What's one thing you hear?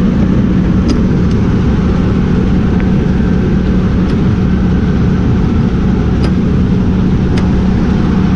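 A metal tailgate latch clicks.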